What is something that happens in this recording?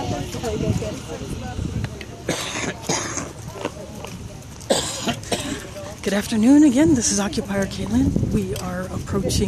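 Several adults talk among themselves nearby outdoors.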